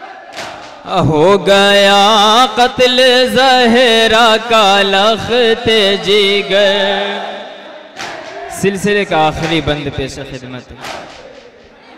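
A young man sings a mournful chant loudly through a microphone.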